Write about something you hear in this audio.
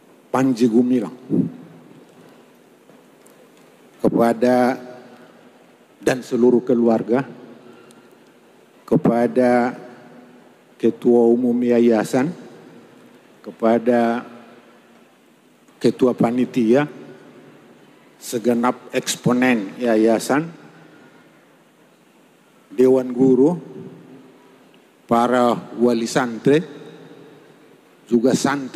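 An elderly man's speech echoes in a large room.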